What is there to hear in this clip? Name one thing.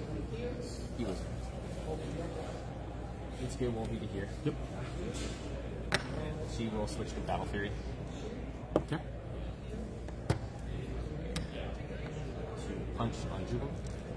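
Game pieces tap and click on a tabletop.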